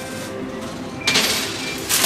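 A coin drops and lands on a pile of coins.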